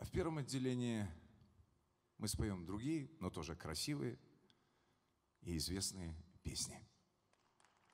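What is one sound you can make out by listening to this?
A middle-aged man speaks slowly into a microphone.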